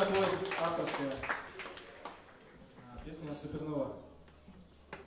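A man speaks through a microphone on a loudspeaker.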